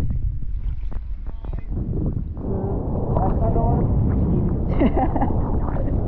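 Water sloshes and laps close by, outdoors.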